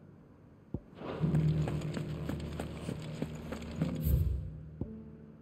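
Footsteps fall steadily on stone paving.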